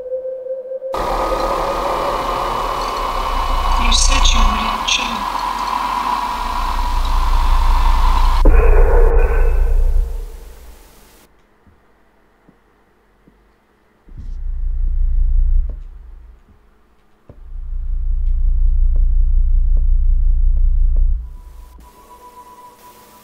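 A young man talks quietly into a close microphone.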